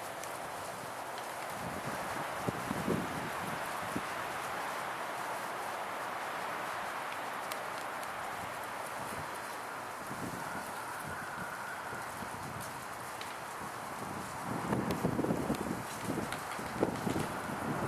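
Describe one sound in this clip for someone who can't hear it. Elk antlers clack and knock together as two bulls spar.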